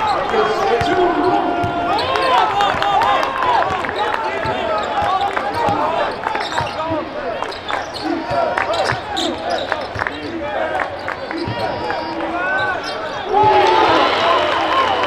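Sneakers squeak sharply on a hardwood floor in a large echoing arena.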